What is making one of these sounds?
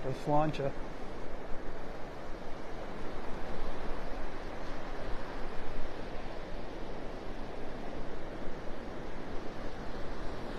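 Gentle waves wash steadily onto the shore.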